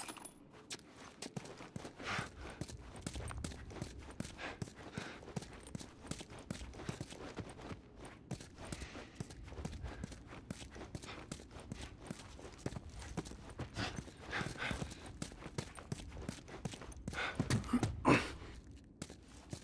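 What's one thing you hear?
Footsteps crunch over debris on a hard floor.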